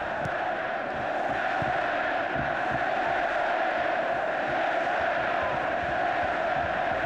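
A large stadium crowd roars and chants steadily in the distance.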